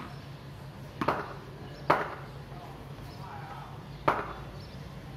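A wooden bat knocks sharply against a hard floor, echoing off nearby walls.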